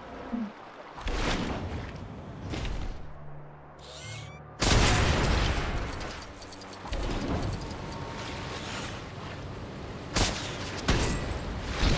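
Water splashes and churns.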